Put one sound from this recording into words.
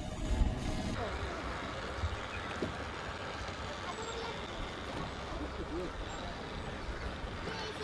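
The paddle wheel of a model paddle steamer churns water.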